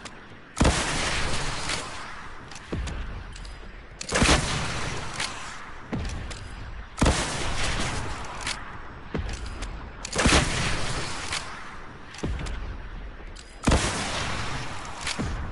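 A rocket launcher fires with a loud whoosh, again and again.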